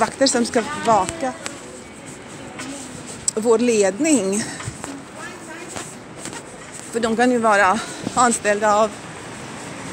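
A woman talks close to the microphone in short bursts.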